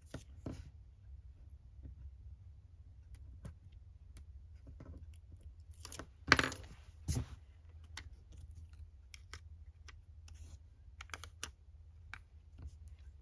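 Paper rustles and crinkles under handling.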